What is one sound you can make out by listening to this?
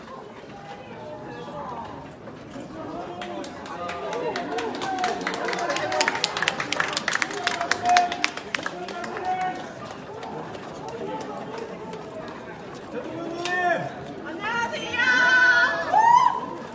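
A crowd of men and women chatter outdoors.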